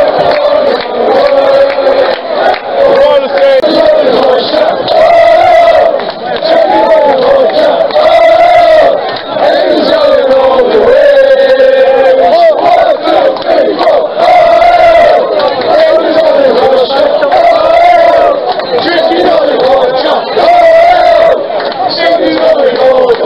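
A large crowd of men chants and sings loudly together outdoors, close by.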